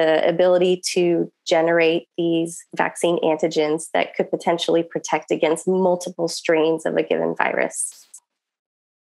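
A woman talks calmly through an online call.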